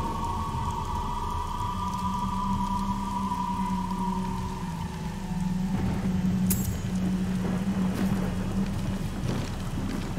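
Skeletons clatter and swords clash in a fight.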